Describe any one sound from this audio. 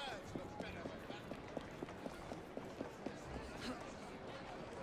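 Footsteps clatter quickly on cobblestones.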